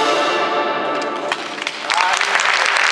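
A band plays music in an echoing hall.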